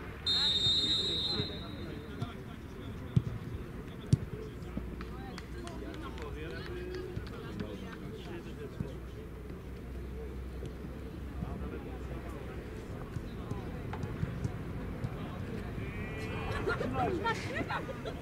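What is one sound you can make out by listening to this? Adults chat quietly nearby outdoors.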